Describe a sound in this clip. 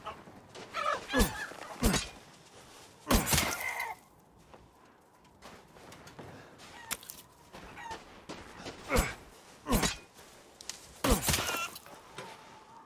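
A hen squawks and clucks nearby.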